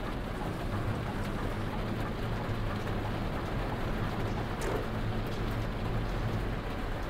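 Rain patters steadily on a windscreen.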